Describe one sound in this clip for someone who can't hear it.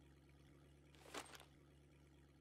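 A fishing rod swishes through the air as it is cast.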